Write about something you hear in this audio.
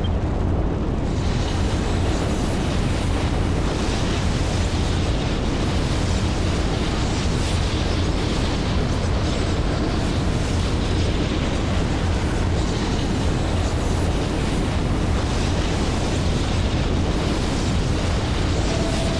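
A spaceship's engines roar steadily.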